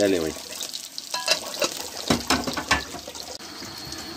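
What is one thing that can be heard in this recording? A metal lid clinks against a pot.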